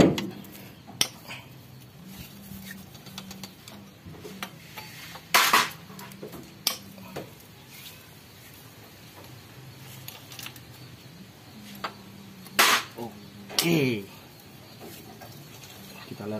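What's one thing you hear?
A wrench clicks and scrapes against metal engine parts.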